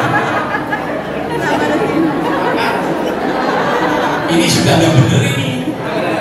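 A middle-aged man speaks with animation into a microphone, heard through loudspeakers in an echoing hall.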